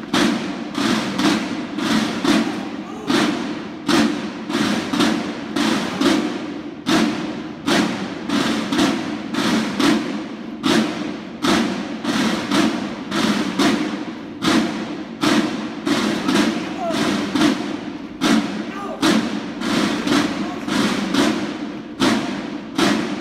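Boots stamp in a steady rhythm as a squad marches on stone in an echoing courtyard.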